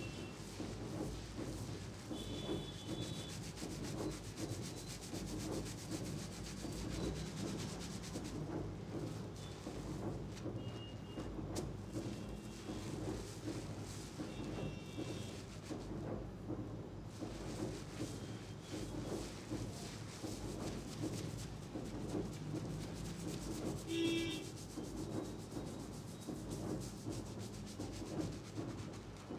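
Fingers squish and rub through thick lather on a man's scalp, up close.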